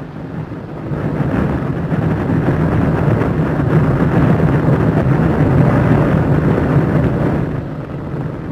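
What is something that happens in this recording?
Flames roar with a deep, steady rumble.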